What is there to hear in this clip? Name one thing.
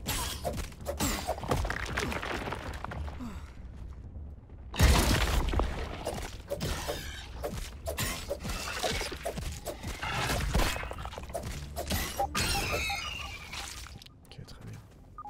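Weapon blows strike a giant insect with sharp thwacks.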